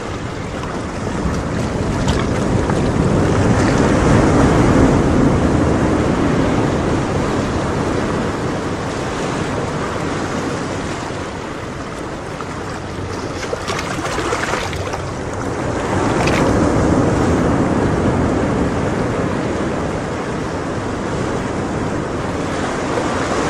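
Water from an aquarium filter bubbles and splashes steadily.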